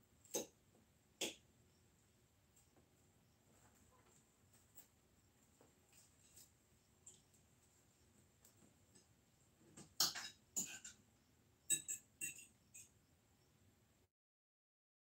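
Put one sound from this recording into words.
Cutlery clinks and scrapes against plates.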